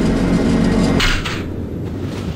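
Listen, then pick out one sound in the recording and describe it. An elevator stops with a metallic clank.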